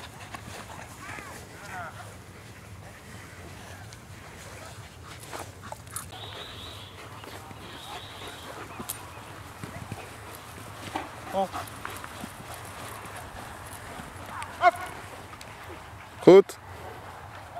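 A man gives short, firm commands to a dog outdoors.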